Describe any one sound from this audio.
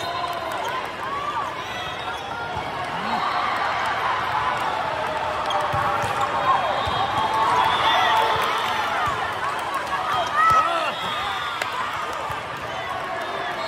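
Young girls shout to each other during play.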